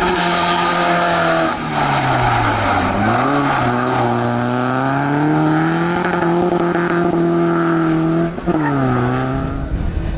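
A rally car engine roars loudly, revving up and down through gear changes.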